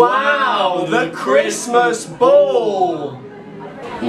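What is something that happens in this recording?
A young man exclaims loudly in a sing-song voice, close by.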